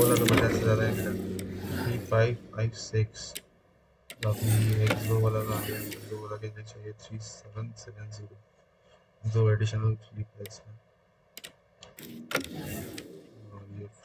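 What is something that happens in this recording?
Short interface clicks sound as menu items change.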